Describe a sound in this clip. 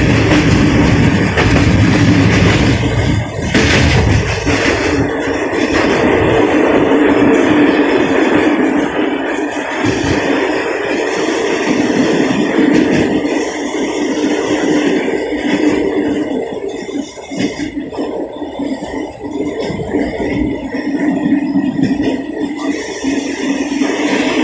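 A train rumbles steadily along the tracks, heard from inside a carriage.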